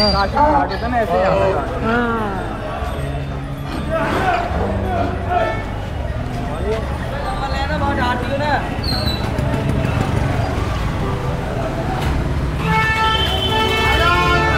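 Motorbike engines rumble and pass close by.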